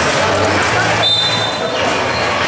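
A referee blows a short, shrill whistle.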